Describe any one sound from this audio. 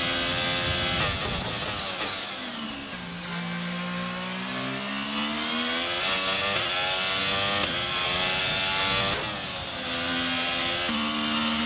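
A racing car engine drops sharply in pitch under hard braking, then revs back up.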